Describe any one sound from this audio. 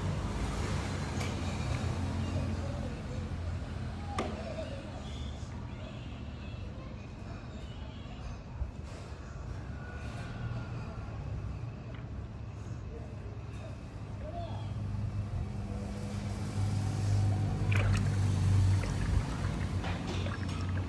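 A thick liquid pours steadily and splashes into a frothy pot.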